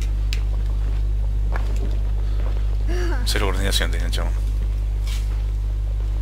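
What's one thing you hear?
Light footsteps patter on rock.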